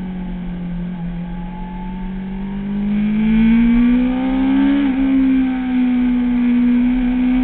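A motorcycle engine roars steadily, rising in pitch as it speeds up and dropping briefly at a gear change.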